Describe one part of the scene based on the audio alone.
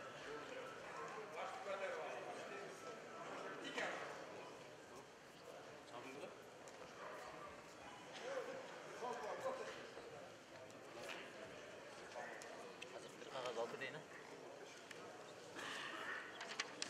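A large indoor crowd murmurs and shouts in an echoing hall.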